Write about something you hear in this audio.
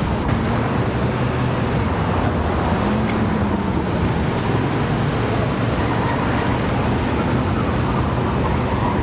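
A car engine rumbles as a vehicle drives slowly past.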